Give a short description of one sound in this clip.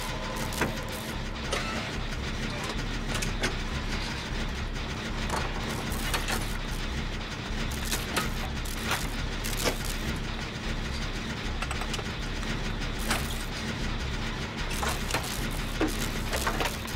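A generator engine rattles and hums steadily.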